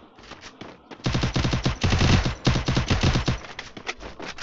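A rapid burst of gunfire rattles loudly.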